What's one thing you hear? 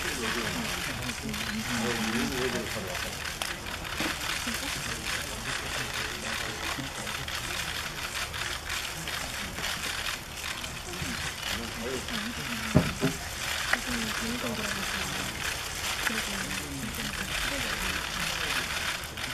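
Young women chatter and call out nearby.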